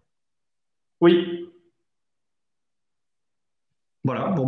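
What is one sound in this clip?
A middle-aged man speaks briefly over an online call.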